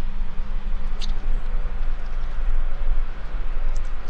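A woman chews and bites into crunchy fried food.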